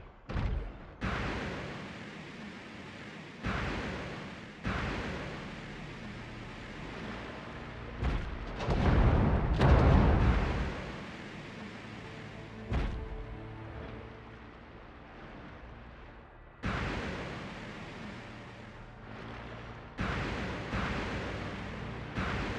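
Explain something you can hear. Jet thrusters whoosh in short bursts.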